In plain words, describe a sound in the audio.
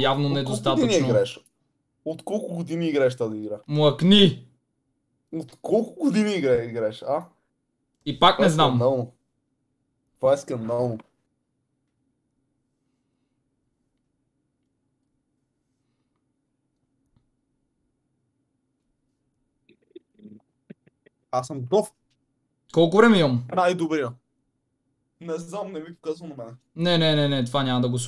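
A young man talks with animation, close to a microphone, in bursts with pauses.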